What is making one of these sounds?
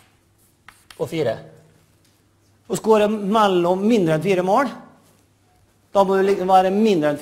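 A man lectures with animation, heard through a microphone in a large hall.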